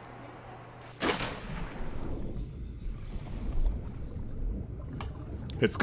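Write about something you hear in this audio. Water swirls and bubbles around a swimmer underwater.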